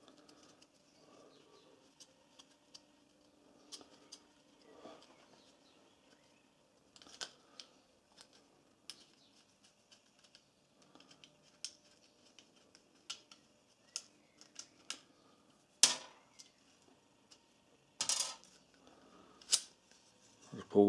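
A steel spanner clinks and clicks against metal parts.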